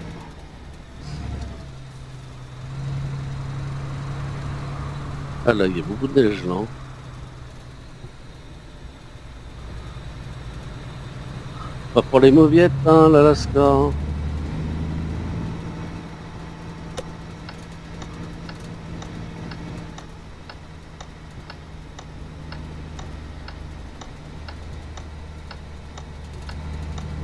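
A heavy diesel truck engine drones as the truck drives.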